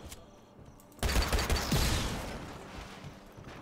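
A loud explosion bursts and crackles.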